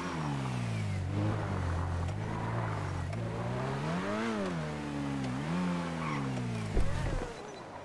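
A car engine idles and revs up and down.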